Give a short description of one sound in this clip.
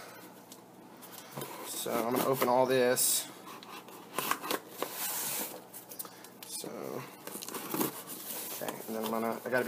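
A cardboard box scrapes and bumps on a wooden table.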